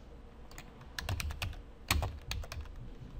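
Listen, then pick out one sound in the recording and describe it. Keys clatter on a computer keyboard in a quick burst.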